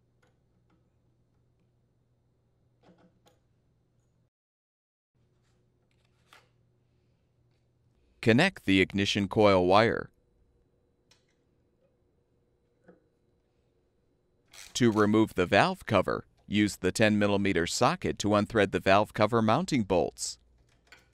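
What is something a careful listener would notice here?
A socket wrench turns a bolt.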